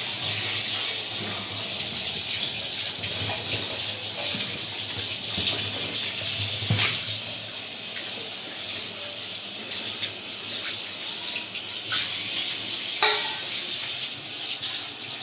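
Tap water runs steadily into a metal sink.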